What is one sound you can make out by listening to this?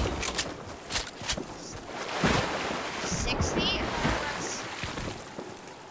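Water splashes as a game character swims.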